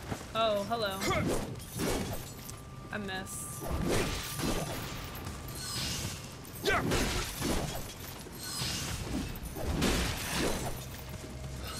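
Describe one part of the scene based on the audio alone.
Sword blows clash and thud in game combat.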